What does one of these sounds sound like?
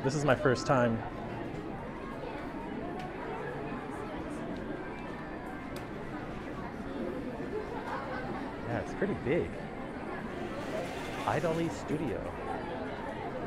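A crowd murmurs and chatters nearby in an indoor space.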